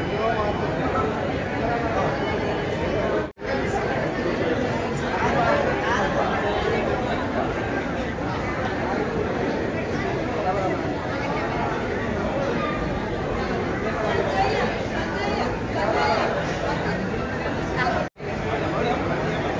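A crowd of men and women chatters loudly nearby in an echoing room.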